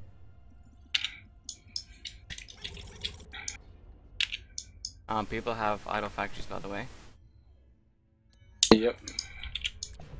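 Short electronic game blips and chimes sound now and then.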